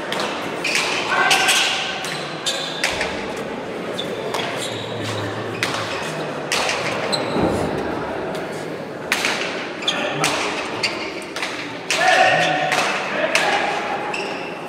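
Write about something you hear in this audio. Shoes squeak sharply on a hard floor.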